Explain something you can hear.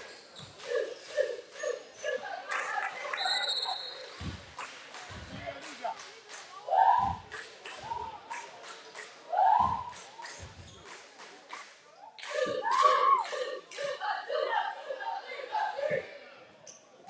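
A basketball bounces on a wooden court.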